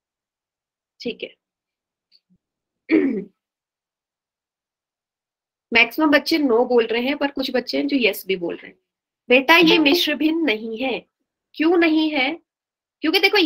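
A young woman speaks calmly through a microphone, heard as over an online call.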